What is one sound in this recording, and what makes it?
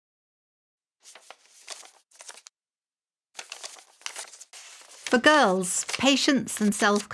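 Paper rustles and slides against paper.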